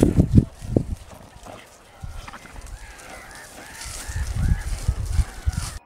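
Dogs rustle through dry grass.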